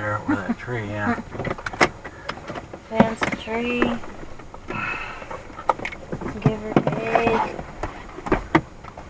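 A man talks with animation inside a car.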